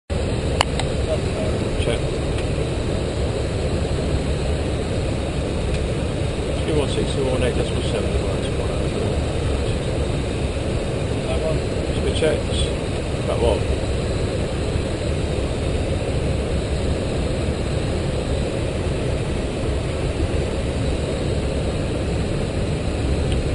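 A jet airliner's engines and airflow roar steadily inside the cockpit.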